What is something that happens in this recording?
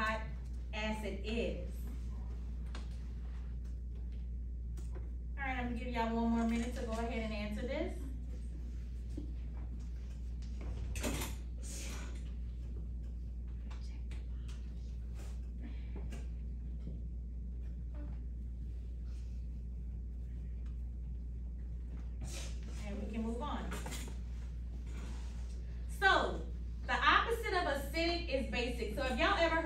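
A woman speaks into a microphone, heard through a loudspeaker.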